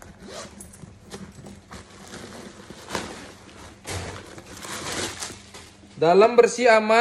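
Plastic wrapping rustles and crinkles.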